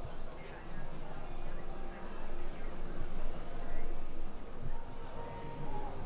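A crowd chatters in a large indoor hall.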